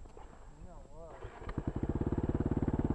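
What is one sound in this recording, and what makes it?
A motorcycle engine starts up and settles into an idle.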